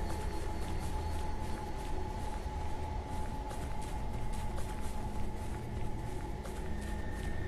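Footsteps run quickly over pavement.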